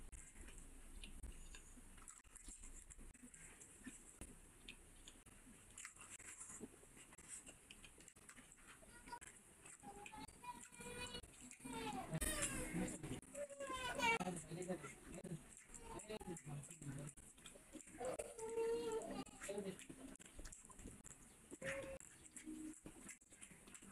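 A man chews food loudly with wet smacking sounds.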